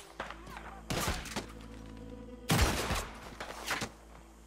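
A pistol fires loud gunshots.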